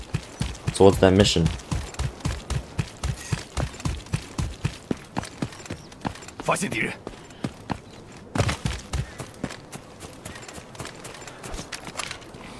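Footsteps tread quickly and steadily through grass and dirt.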